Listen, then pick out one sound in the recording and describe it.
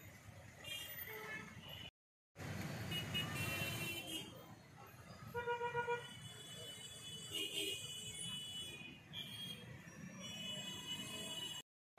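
Motorcycles and cars drive past on a busy street.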